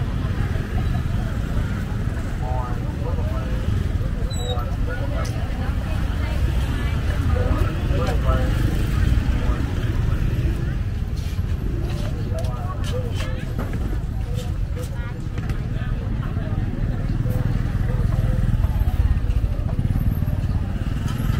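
Motorbike engines hum and putter past.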